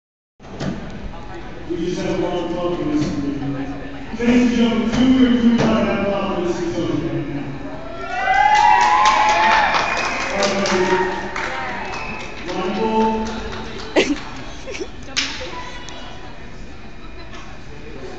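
A crowd of young people chatters and calls out in a large echoing hall.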